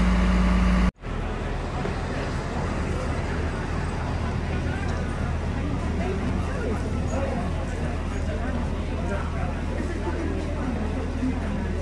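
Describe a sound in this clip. A bus rolls up slowly and comes to a stop close by.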